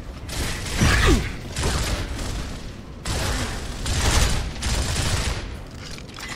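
Loud gunfire rattles in short bursts.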